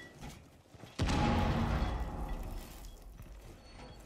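A wall bursts apart in a loud explosion, and debris rumbles down.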